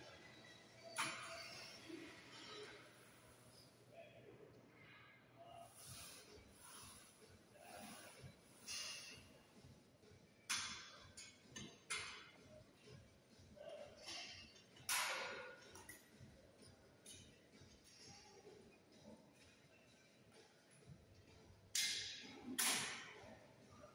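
A leg press machine's weights clank as they lift and drop.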